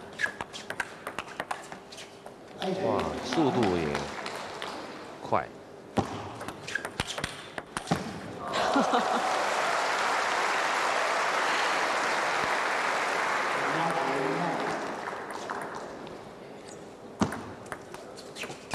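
A table tennis ball clicks back and forth against paddles and the table.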